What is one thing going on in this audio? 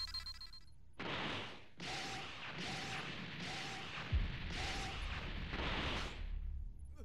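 Blasts and explosions burst as a game character attacks.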